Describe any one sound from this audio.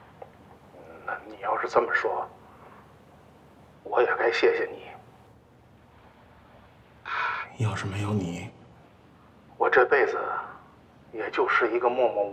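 A middle-aged man speaks slowly and gravely into a phone.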